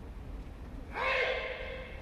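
A man gives a sharp shout in a large echoing hall.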